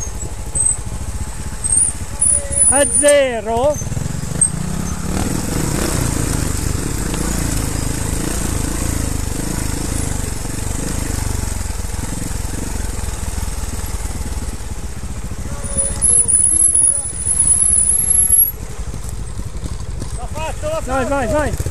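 A motorcycle engine rumbles steadily at low speed nearby.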